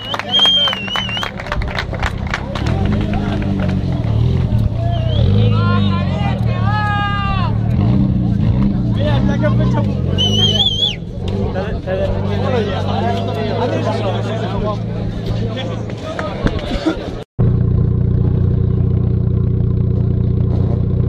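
A car engine idles with a deep, rumbling exhaust.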